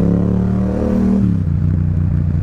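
A motorcycle engine drops in pitch during a gear change.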